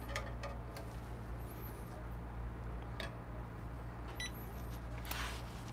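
An espresso machine hums low and steady.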